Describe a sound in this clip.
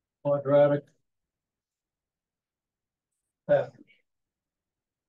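An elderly man speaks calmly in short bursts with pauses.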